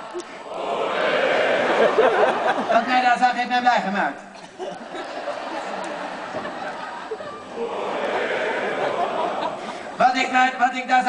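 An audience laughs and cheers loudly in a large hall.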